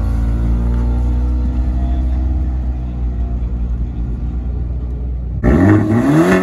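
A car engine hums low as it drives slowly past.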